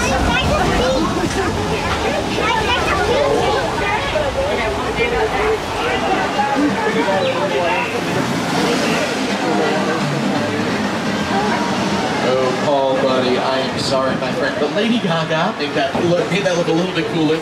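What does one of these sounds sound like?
A man talks over a loudspeaker.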